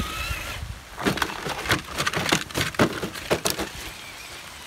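A toy truck tumbles and knocks against the rocky ground.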